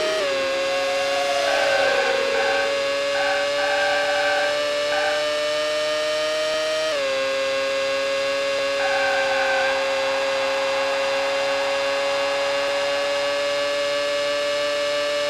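A racing car engine whines at high revs, shifting up a gear partway through.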